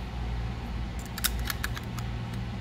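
A thin metal plate clicks and rattles as it is set in place.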